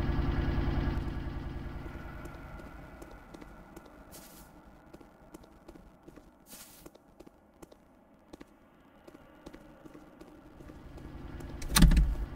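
Footsteps tread slowly across a wooden floor.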